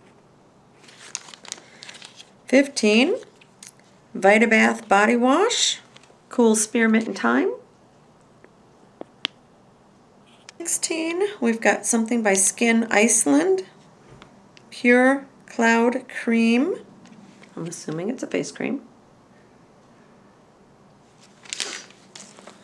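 A middle-aged woman talks calmly and close by.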